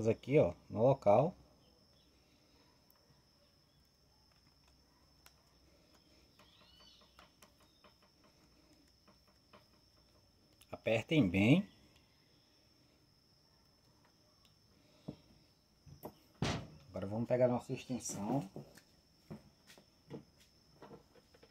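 Plastic clicks and knocks as a power tool is handled.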